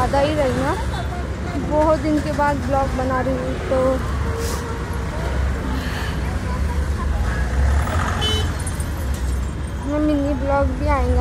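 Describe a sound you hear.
Motorbikes and cars rumble past on a busy road.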